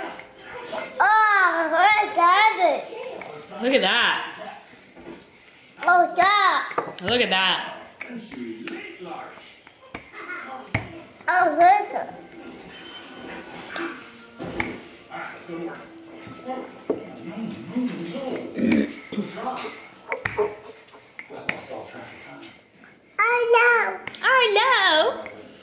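A toddler babbles and squeals excitedly close by.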